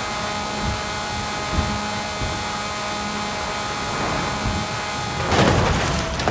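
A racing car engine roars at high speed, whining steadily.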